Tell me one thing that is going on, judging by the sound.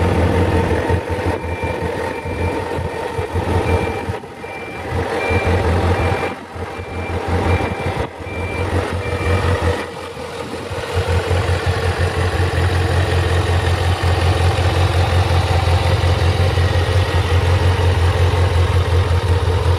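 A motorcycle engine idles close by with a steady low rumble.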